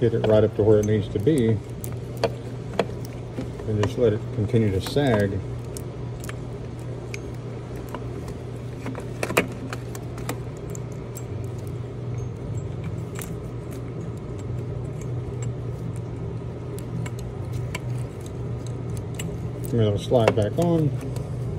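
Metal engine parts clink and click.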